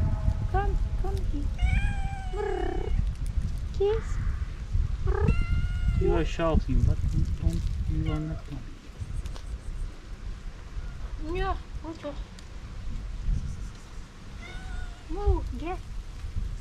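Cats meow repeatedly, close by.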